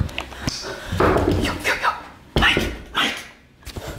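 A fist knocks on a door.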